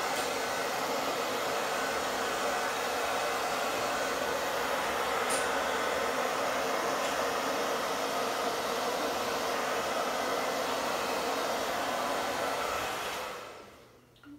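A heat gun blows with a loud, steady roar, then stops.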